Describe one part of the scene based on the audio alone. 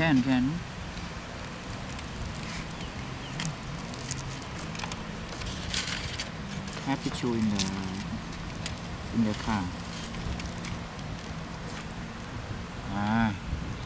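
Crispy fried fish skin crackles as fingers tear it apart.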